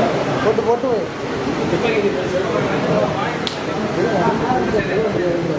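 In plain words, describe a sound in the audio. A crowd of men and women chatter loudly all around in an echoing hall.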